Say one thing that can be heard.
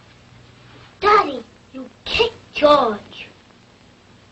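A young boy speaks briefly and calmly, close by.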